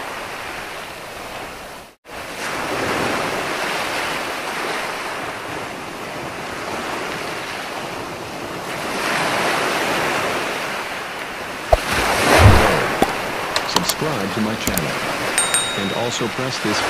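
Waves break and wash up onto a beach.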